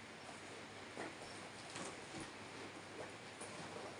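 A door swings slowly on its hinges.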